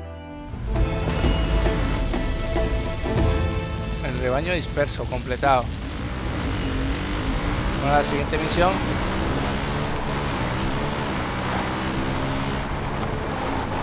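A quad bike engine hums and revs steadily.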